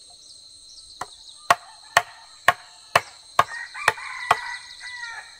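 Sharp knocks of a blade chopping wood ring out at a steady pace.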